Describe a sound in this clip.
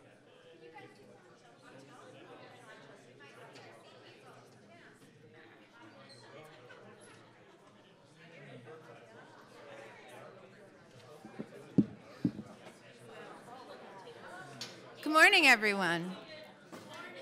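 Many people murmur and chatter in a large room.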